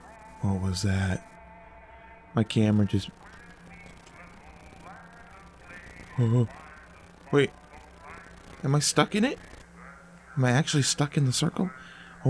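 A young man talks with animation close to a headset microphone, in short bursts.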